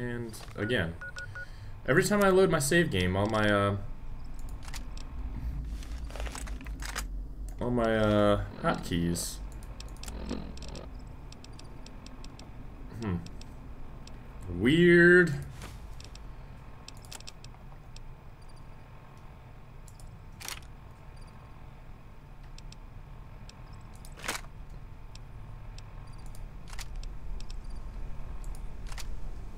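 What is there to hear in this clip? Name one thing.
Soft electronic clicks sound as menu items are selected.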